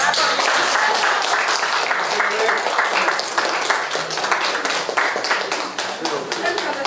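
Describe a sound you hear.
A crowd applauds with steady clapping.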